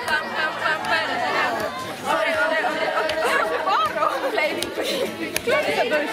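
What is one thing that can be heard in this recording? Young girls laugh loudly close by.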